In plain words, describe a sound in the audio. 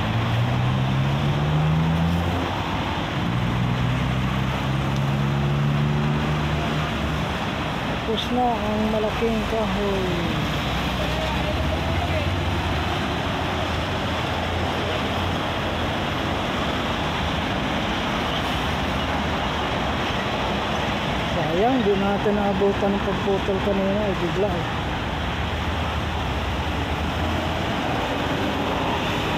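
An excavator engine rumbles steadily nearby.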